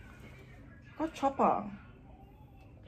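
An older woman exclaims loudly nearby.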